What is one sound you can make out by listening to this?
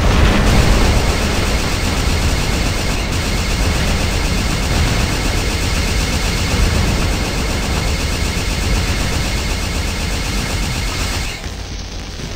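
Jet thrusters roar loudly.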